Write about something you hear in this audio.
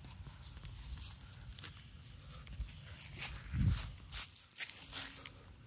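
Footsteps crunch and rustle through dry leaves on grass.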